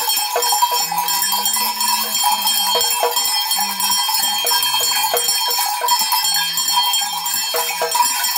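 Shakers rattle rapidly and steadily.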